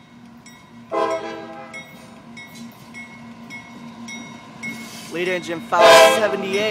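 A train horn blares loudly in long blasts.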